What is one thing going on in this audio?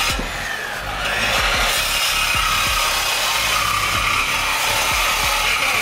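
A power tool cuts loudly through metal.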